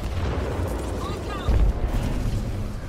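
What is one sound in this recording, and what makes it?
An explosion bursts with a loud blast.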